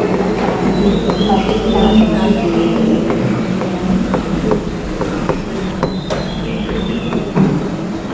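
A pen taps and clicks against a hard board.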